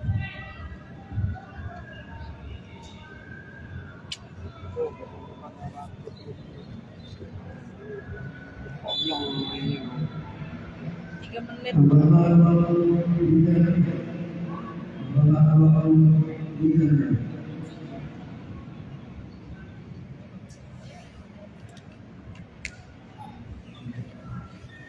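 Football players shout to each other across a large open pitch.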